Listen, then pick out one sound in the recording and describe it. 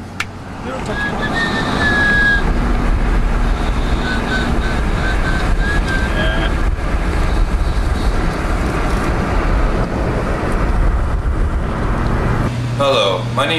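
A car engine hums and road noise rumbles as a car drives along.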